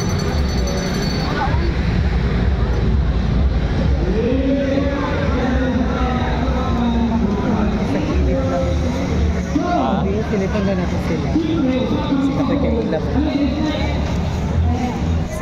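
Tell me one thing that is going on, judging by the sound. Loud music plays through loudspeakers from a stage nearby.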